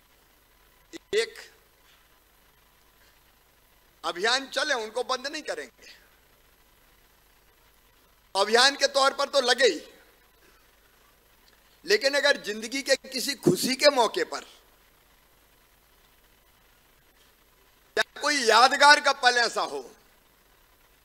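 A middle-aged man speaks forcefully into a microphone, in short phrases with pauses.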